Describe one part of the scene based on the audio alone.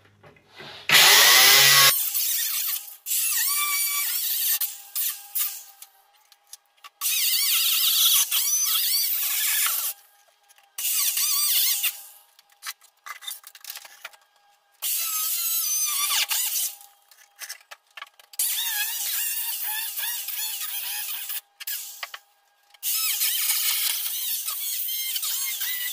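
An angle grinder whines and grinds against metal in repeated bursts.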